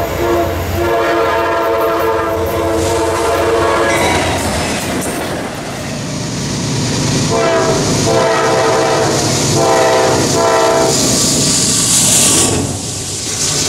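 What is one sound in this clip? A train rumbles and roars past on the tracks.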